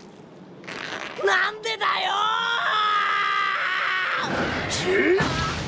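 A young man cries out in anguish, shouting loudly.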